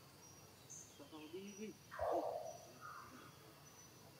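A baby monkey squeaks softly.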